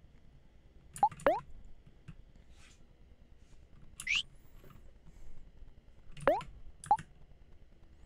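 Quick rising electronic chirps sound as menu selections change.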